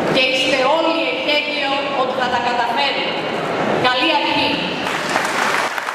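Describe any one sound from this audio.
A woman speaks through a microphone to an audience.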